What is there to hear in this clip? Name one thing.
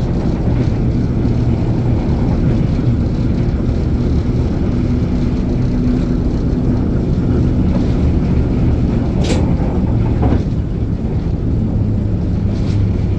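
Train wheels clank over rail joints.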